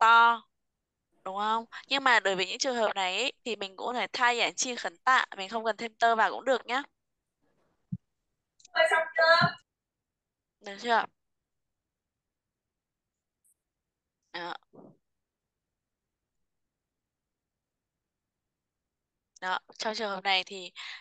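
A woman explains calmly over an online call.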